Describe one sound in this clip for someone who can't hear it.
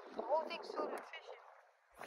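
Water laps gently against stones.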